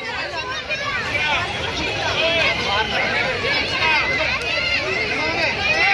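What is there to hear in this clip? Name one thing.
Children shout and laugh close by.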